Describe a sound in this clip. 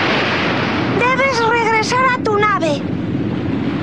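A cartoon character speaks in a high, squeaky voice.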